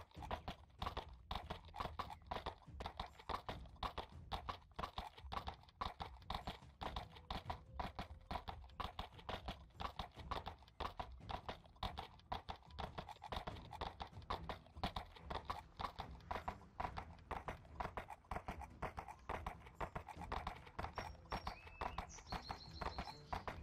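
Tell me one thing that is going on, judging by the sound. A horse's hooves clop steadily on a stony path.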